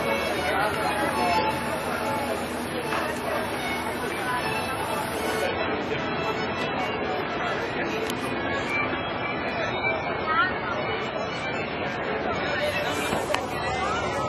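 Water splashes against the side of a moving boat.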